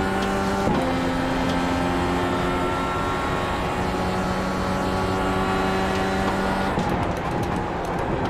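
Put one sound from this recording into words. Tyres hum on a race track.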